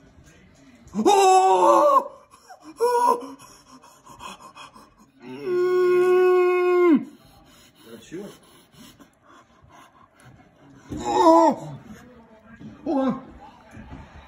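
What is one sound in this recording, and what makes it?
A young man exclaims excitedly close by.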